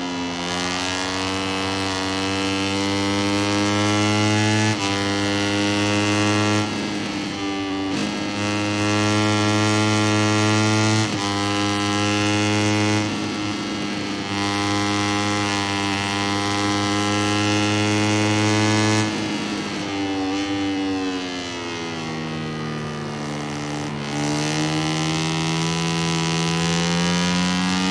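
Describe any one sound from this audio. A motorcycle engine roars loudly at high revs.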